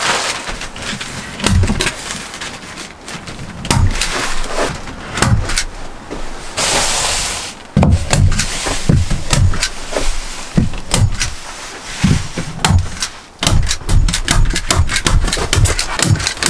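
Plastic sheeting rustles and crinkles close by.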